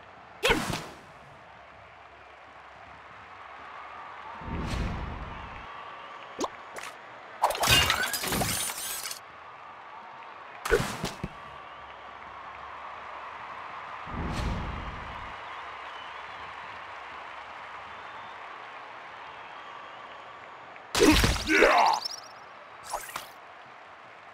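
Arcade game sound effects chime and whoosh now and then.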